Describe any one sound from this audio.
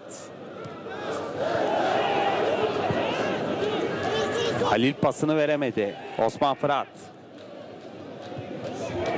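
A large stadium crowd chants and roars outdoors.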